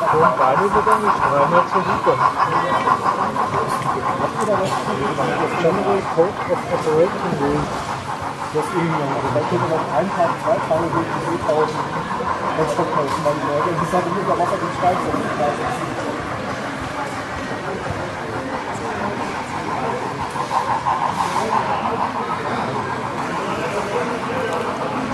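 A model train rolls along its track with a soft, steady clatter of wheels.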